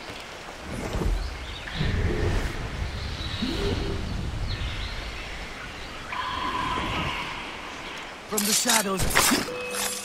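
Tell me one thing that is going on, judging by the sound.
Leaves and ferns rustle as someone pushes through bushes.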